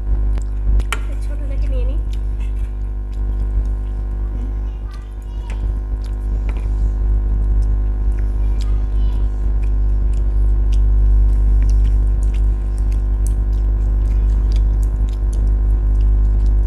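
Fingers squish and mix rice and curry.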